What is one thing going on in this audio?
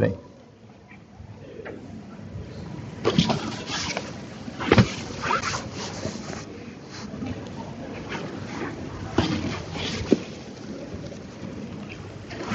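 Clothing rustles and bumps against a microphone.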